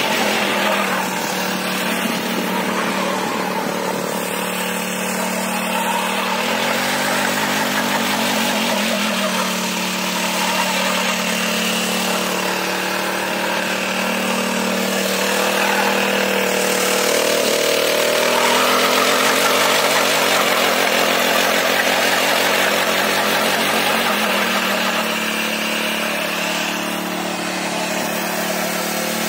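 A small petrol engine drones steadily close by.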